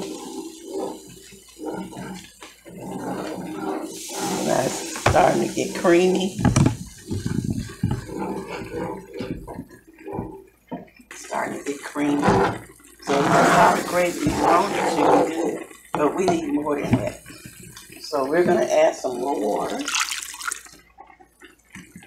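A spatula scrapes and clatters against a pan.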